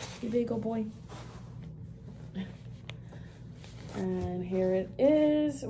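A woman speaks with animation close to the microphone.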